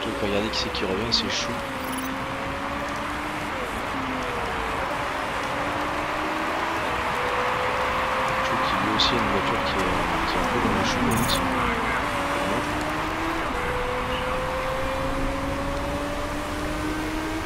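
Racing car engines whine steadily, rising and falling in pitch as the cars pass.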